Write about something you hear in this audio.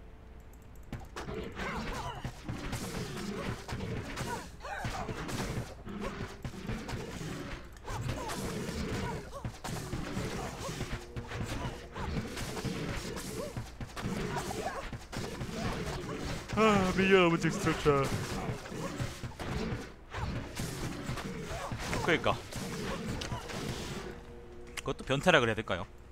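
Game monsters clash in combat with hits and magic blasts.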